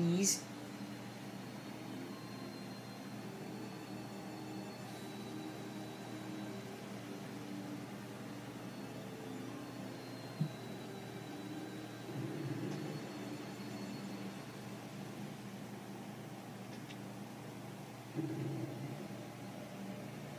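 Music plays softly from a television speaker.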